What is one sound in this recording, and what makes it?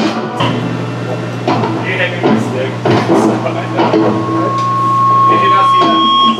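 Drums and cymbals crash with a loud beat.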